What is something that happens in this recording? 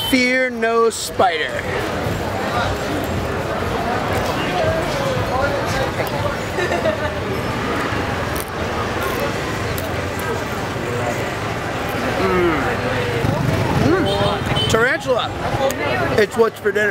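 A crowd murmurs in a busy street outdoors.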